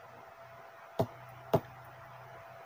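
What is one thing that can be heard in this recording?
A game menu gives short clicks as options are selected.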